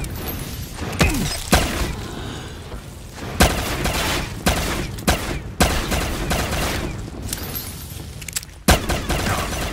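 A pistol fires in sharp, loud shots.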